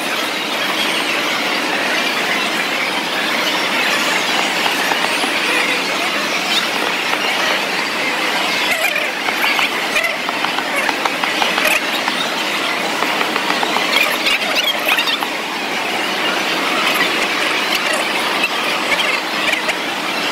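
A crowd murmurs and chatters throughout a large, echoing hall.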